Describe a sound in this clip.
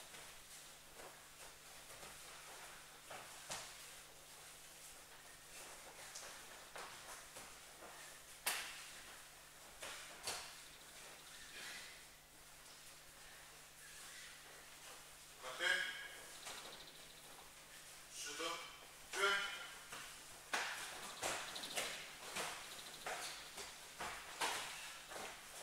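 Bare feet thud and shuffle on a padded mat in an echoing hall.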